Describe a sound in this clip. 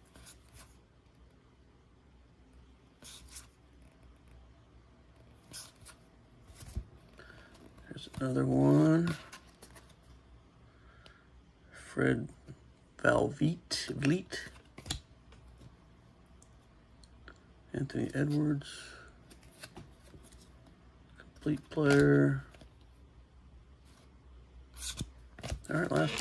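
Stiff cards slide and flick against each other in the hands.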